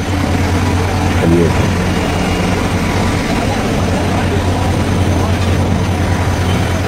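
Jet engines hum steadily and loudly outdoors.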